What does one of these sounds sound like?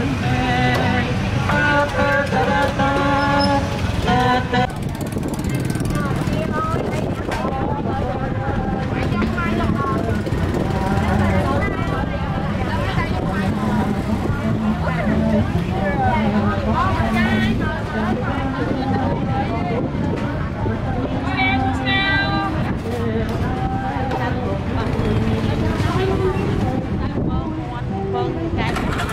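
Several women and men chatter nearby and in the distance.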